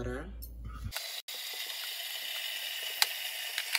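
Tap water runs and splashes into a pot.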